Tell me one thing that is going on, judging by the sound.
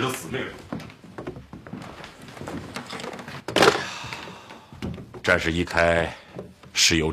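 A middle-aged man speaks firmly nearby.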